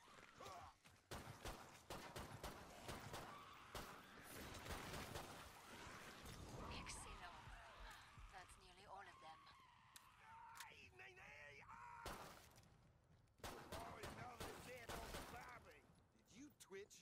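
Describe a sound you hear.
Guns fire in rapid bursts of loud shots.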